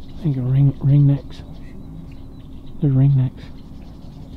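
Ducks call loudly from the water nearby.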